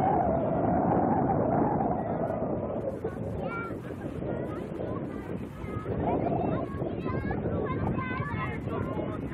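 Wind blows steadily outdoors, rumbling across the microphone.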